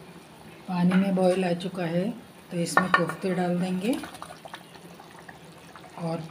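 A thick sauce bubbles and simmers in a pot.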